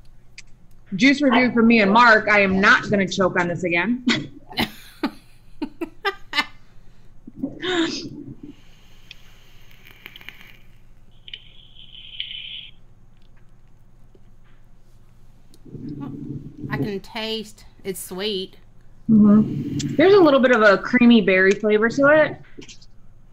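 A young woman talks with animation over an online call.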